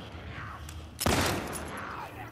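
A gunshot rings out sharply.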